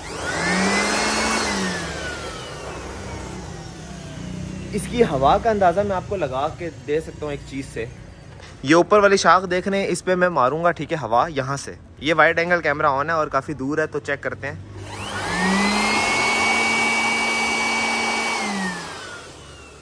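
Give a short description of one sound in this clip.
An electric leaf blower whirs up to a high whine and then winds down.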